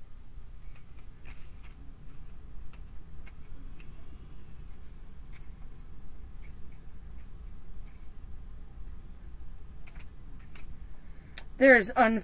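Cards slide and tap on a table.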